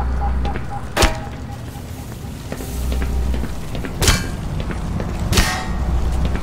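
A metal crowbar swings and strikes hard with sharp clanging hits.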